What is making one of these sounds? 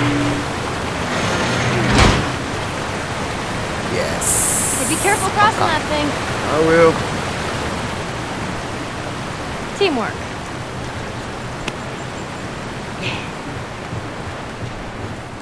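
Water rushes and splashes steadily nearby.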